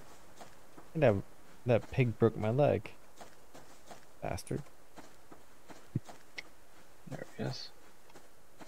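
A man speaks into a microphone with animation, close by.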